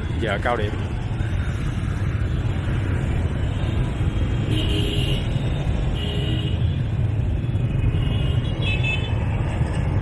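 Motorbikes rev and pull away in a crowd.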